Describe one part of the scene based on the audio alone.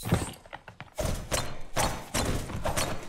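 Glass shatters and debris clatters to the floor.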